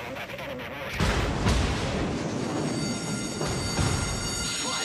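Heavy naval guns fire in deep booming blasts.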